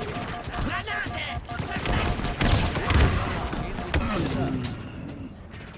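Gunfire and explosions crackle and boom from a game.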